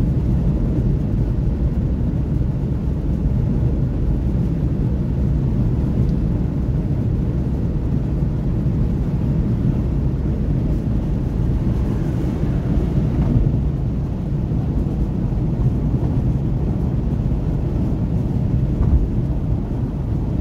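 Tyres roar on asphalt.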